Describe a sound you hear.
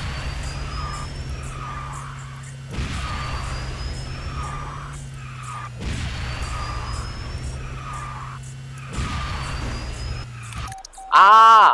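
A video game kart engine hums steadily.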